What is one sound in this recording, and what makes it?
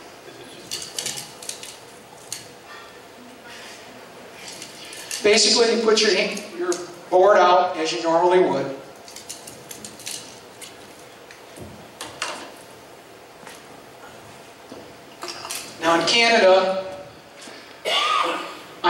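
A middle-aged man speaks into a microphone over loudspeakers in a large echoing hall.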